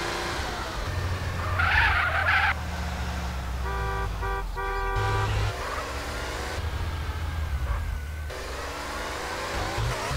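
Car tyres screech while sliding around a corner.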